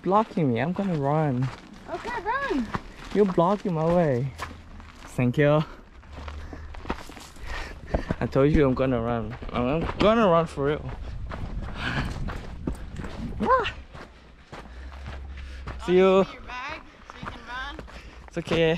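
Footsteps crunch on a dirt trail.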